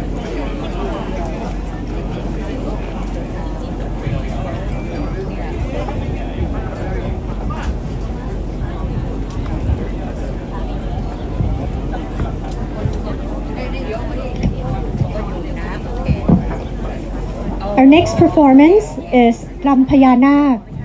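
A crowd of adults chatters and murmurs nearby outdoors.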